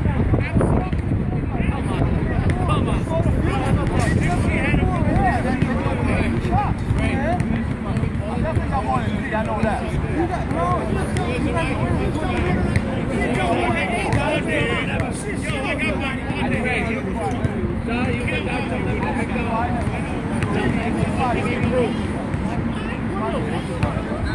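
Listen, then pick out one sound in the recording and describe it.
Several young men talk casually together outdoors, close by.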